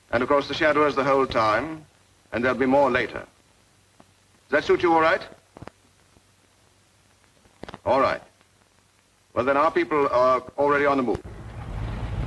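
A middle-aged man speaks firmly into a telephone, close by, with pauses.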